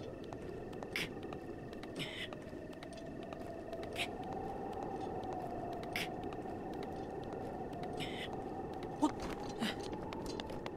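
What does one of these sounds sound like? Hands and feet scrape on rock as someone climbs.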